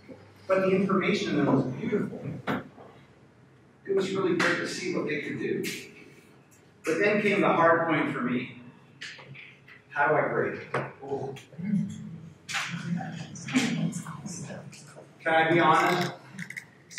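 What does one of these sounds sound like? A man lectures with animation in an echoing room.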